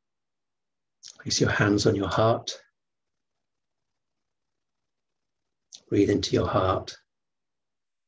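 A man speaks calmly and slowly through an online call, with long pauses.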